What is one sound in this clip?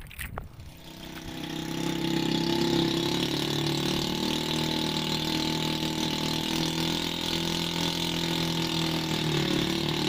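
A boat engine hums steadily over the sea.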